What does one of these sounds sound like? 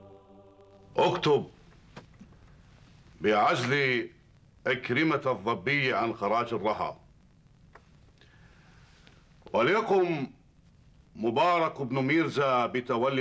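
A middle-aged man speaks firmly and close by, with pauses.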